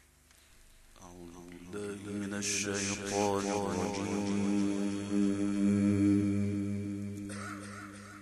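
A man chants a long, drawn-out melodic recitation loudly through a microphone and loudspeakers.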